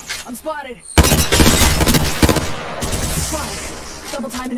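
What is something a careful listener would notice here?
A rifle fires rapid, loud gunshots.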